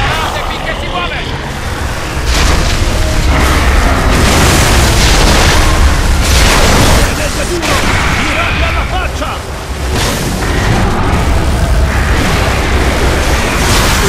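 Fires roar and explosions boom.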